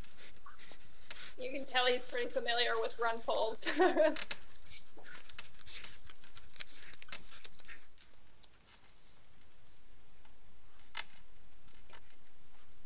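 An animal's claws scrape and scratch against tree bark.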